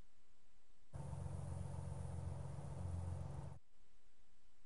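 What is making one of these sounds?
A jeep engine rumbles as it drives over a dirt track.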